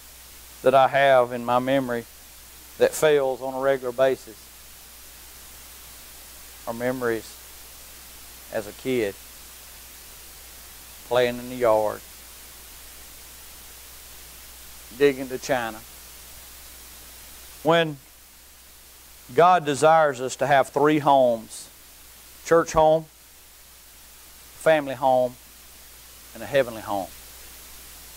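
A middle-aged man speaks calmly into a microphone, with long pauses.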